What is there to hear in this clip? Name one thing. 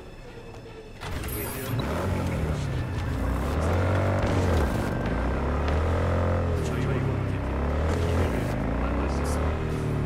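A motorcycle engine starts up and revs, rising and falling in pitch as it rides along.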